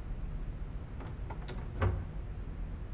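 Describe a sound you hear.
A cupboard door clicks open.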